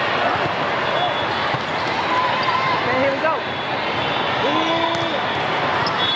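Sneakers squeak sharply on a court floor.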